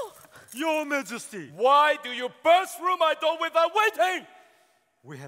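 A man sings in a loud operatic voice in a large echoing hall.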